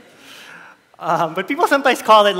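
A man speaks through a headset microphone in a large hall.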